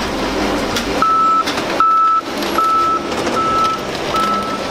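A backup alarm beeps steadily.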